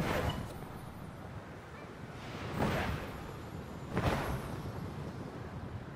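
Rushing wind sweeps past in swelling gusts.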